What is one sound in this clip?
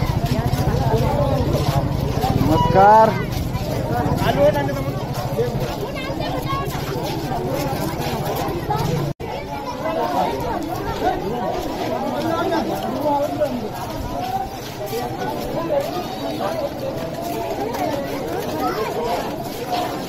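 A crowd of men and women chatters all around, close by.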